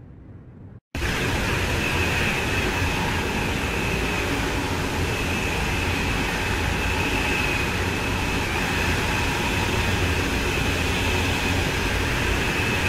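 A fast train roars loudly along the track with rushing wind.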